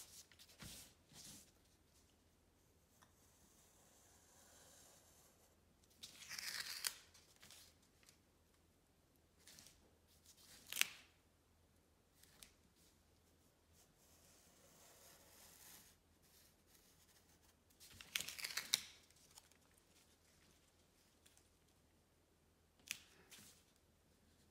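Masking tape peels and rips off a roll.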